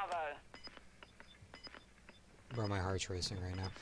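Keypad buttons beep as they are pressed.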